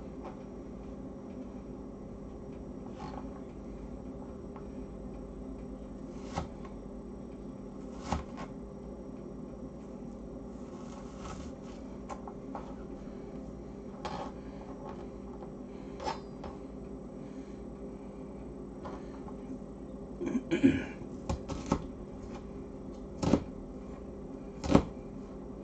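A pot of soup simmers and bubbles.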